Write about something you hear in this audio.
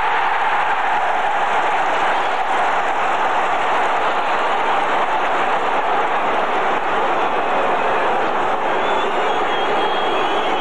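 A large stadium crowd roars and chants loudly throughout.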